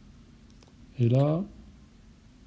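A short rising electronic chime sounds as a game menu item is selected.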